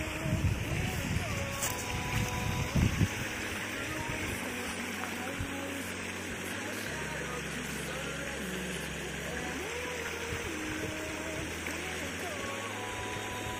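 Water splashes steadily from a leaking pipe onto wet ground.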